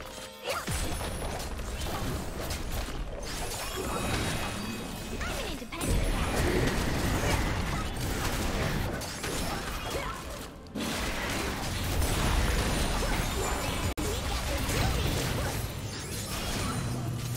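Game characters clash with rapid hits and impacts.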